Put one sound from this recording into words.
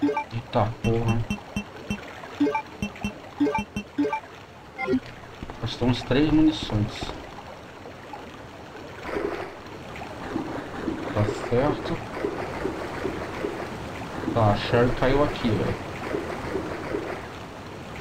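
A young man talks casually into a nearby microphone.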